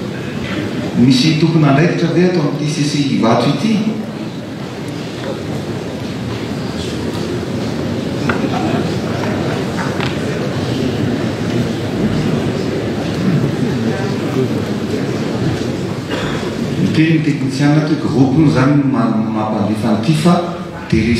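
A man speaks through a loudspeaker, echoing in a large hall.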